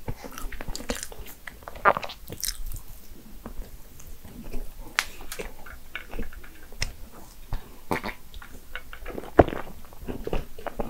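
A woman chews food wetly, close to a microphone.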